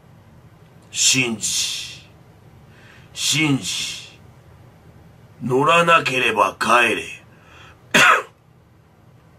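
A man speaks close up in short, dramatic bursts with pauses between them.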